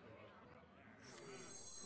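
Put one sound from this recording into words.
A game chime rings as a card is picked up.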